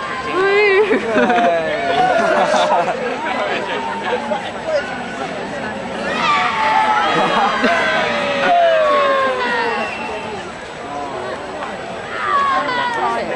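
A large crowd of spectators chatters outdoors.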